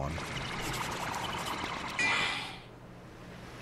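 A magic spell swirls with a shimmering, sparkling whoosh.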